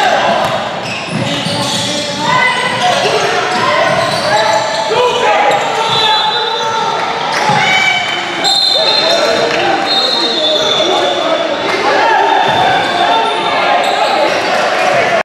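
Spectators nearby talk and shout in a large echoing hall.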